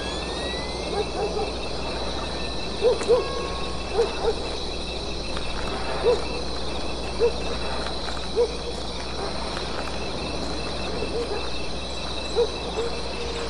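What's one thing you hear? Soft footsteps pad on grass.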